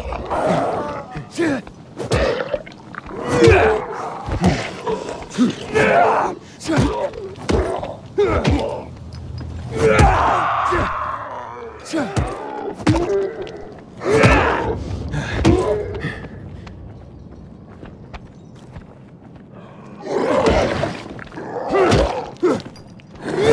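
Zombies snarl and growl close by.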